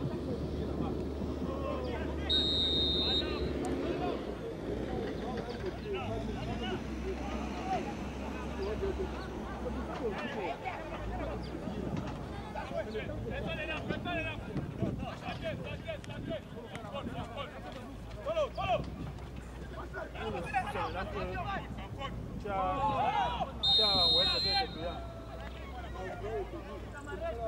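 Spectators shout and cheer outdoors in the distance.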